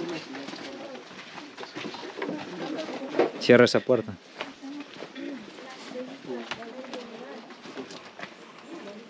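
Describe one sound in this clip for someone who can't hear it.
Men talk nearby in low voices.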